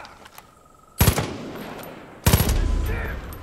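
A rifle fires loud shots.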